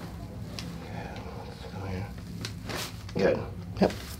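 A neck joint cracks softly.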